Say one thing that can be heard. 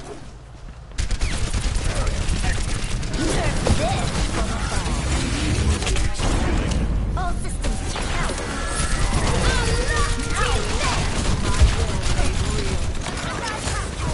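Game gunfire and blasts clatter rapidly in a busy fight.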